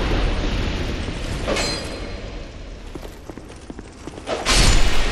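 Armoured footsteps clink on a stone floor.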